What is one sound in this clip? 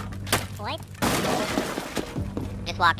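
Wooden boards splinter and crash apart.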